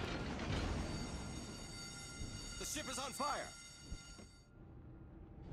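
Shells splash and explode in the water with deep booms.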